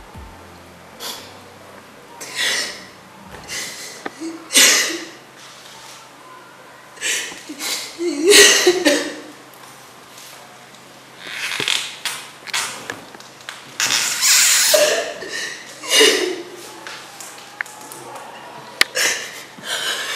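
A young woman sobs and wails loudly nearby.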